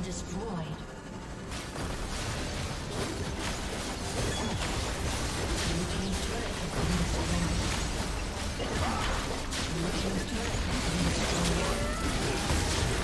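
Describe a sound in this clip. Magic blasts and crashing impacts burst in quick succession.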